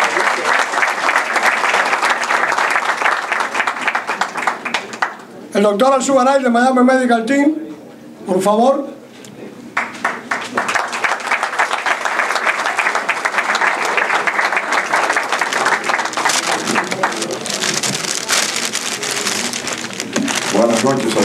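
An audience claps and applauds in a room.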